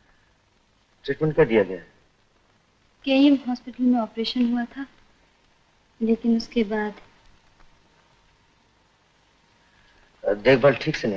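A woman answers quietly, close by.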